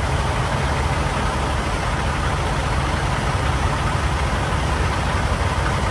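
A truck engine idles with a low, steady rumble nearby.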